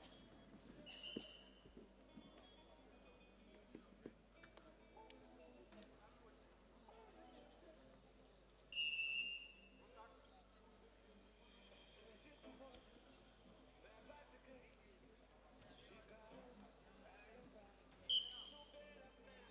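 A referee's whistle blows short sharp blasts in a large echoing hall.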